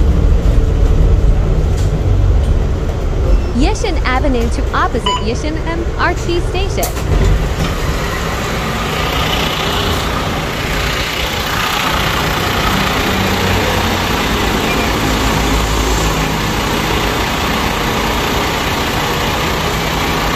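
A bus engine rumbles steadily nearby.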